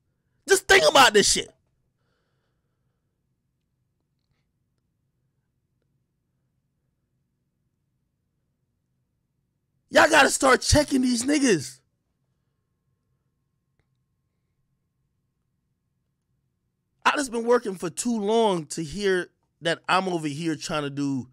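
A man talks with animation close to a microphone, in bursts with pauses.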